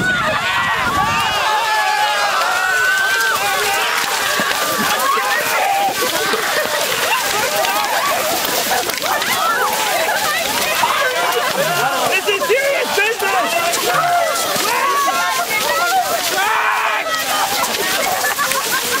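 A large crowd of young men and women chatter, shout and cheer close by.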